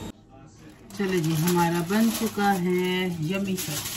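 Aluminium foil crinkles and rustles.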